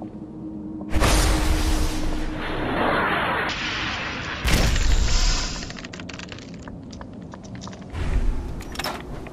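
A gun fires in loud blasts and rapid shots.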